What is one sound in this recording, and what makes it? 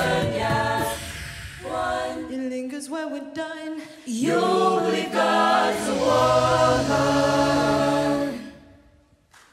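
A large mixed choir sings together through microphones in a large hall, then stops.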